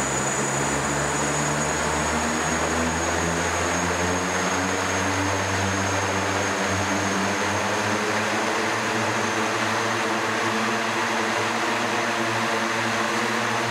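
Drone propellers whir loudly and steadily as a small aircraft hovers.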